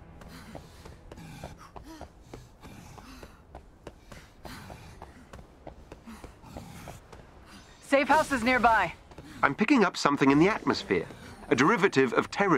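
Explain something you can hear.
Quick footsteps run on hard pavement.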